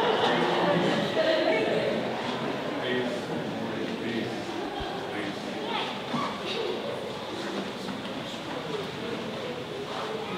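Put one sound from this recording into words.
Several adults chat quietly in an echoing hall.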